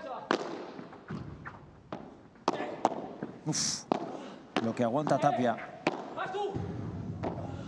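Padel rackets strike a ball with sharp pops in a large echoing hall.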